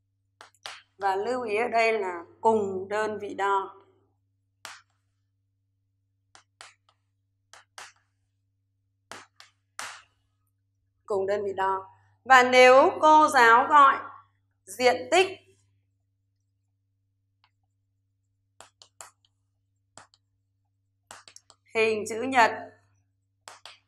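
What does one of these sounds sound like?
A woman speaks calmly and clearly into a close microphone, in short phrases with pauses.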